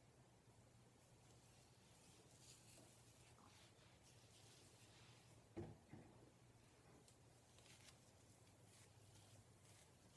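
A comb rakes through hair with a soft scratching.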